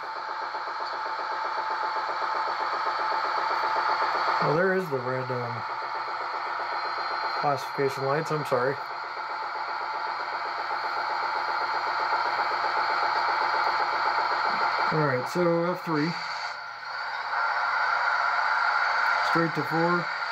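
A model train hums steadily as it rolls along the track.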